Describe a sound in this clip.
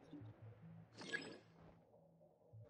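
A bright magical burst rings out with a shimmering chime.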